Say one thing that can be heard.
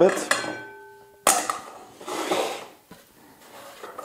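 A knife scrapes chopped food off a board into a metal bowl.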